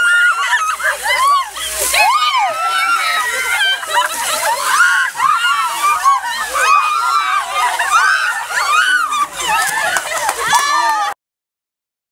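A crowd of young women and men shriek and scream loudly.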